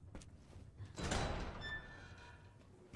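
A heavy metal door creaks open.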